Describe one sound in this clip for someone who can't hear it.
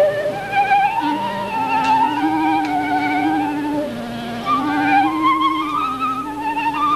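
A clarinet plays a lower melody alongside a flute.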